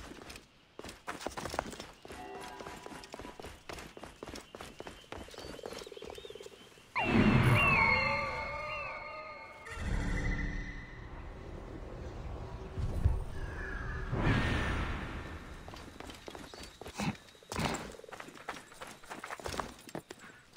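Footsteps scuff and patter on rock.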